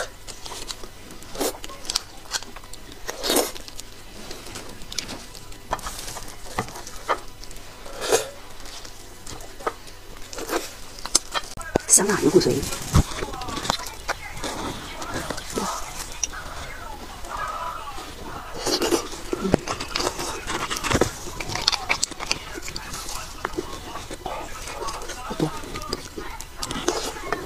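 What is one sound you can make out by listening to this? A young woman chews soft food wetly, close to a microphone.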